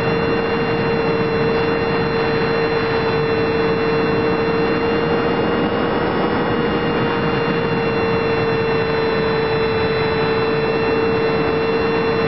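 A drone's motors hum steadily and loudly close by.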